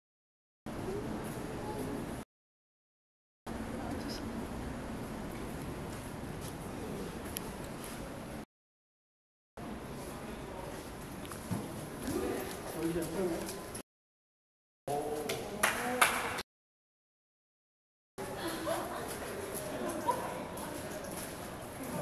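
Young women chat close by.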